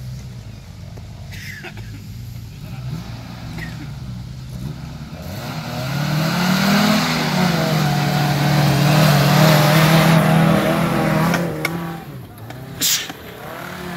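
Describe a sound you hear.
An off-road vehicle's engine hums low, then roars louder as the vehicle climbs close by.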